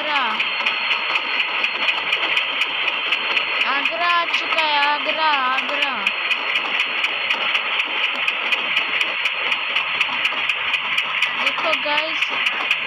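A train rolls along the rails with a fast, steady clatter of wheels over rail joints.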